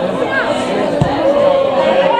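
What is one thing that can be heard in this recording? A football is struck hard with a thump.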